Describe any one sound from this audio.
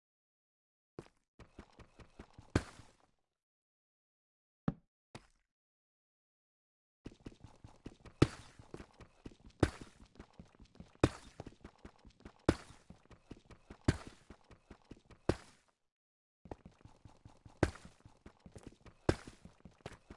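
A pickaxe chips rapidly at stone, and blocks crack loose every second or so.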